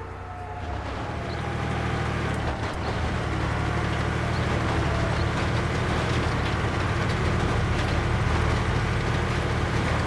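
A tank engine rumbles as a tank drives.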